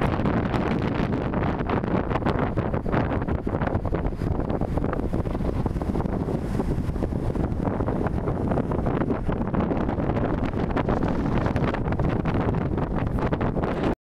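Waves wash onto a rocky shore.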